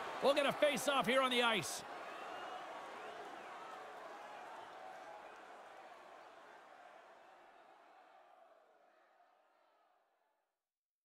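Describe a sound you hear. A large crowd murmurs and cheers in an echoing arena, slowly fading.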